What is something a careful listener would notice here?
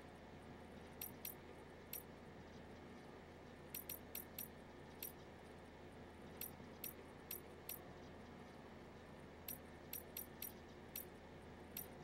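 Short soft clicks tick again and again as menu items are selected.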